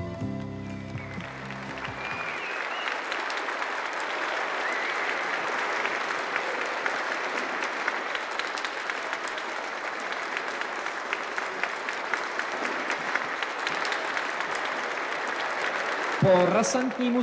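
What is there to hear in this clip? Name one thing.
A large crowd applauds and cheers.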